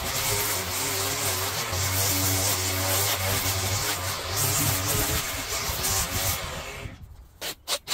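A string trimmer whines as it cuts grass.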